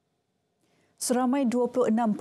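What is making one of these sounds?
A young woman reads out the news calmly into a microphone.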